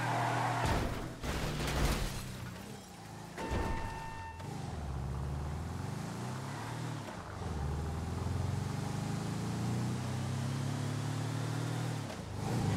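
A van's engine hums and revs as it drives, rising and falling in pitch.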